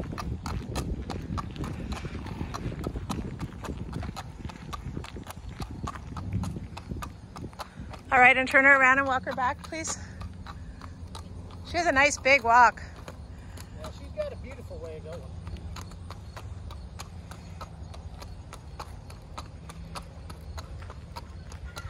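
A horse's hooves clop steadily on pavement.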